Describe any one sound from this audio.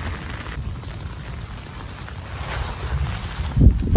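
A wood campfire crackles.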